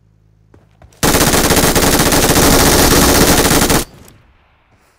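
A rifle fires in a rapid burst.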